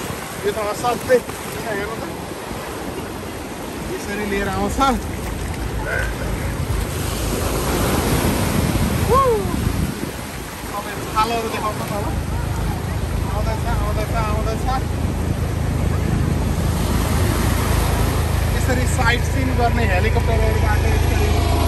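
A middle-aged man talks close by.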